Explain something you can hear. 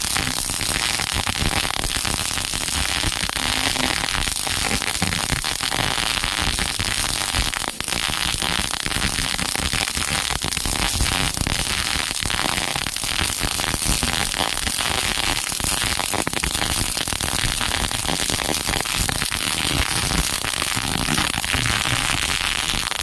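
An arc welder crackles and sizzles steadily up close.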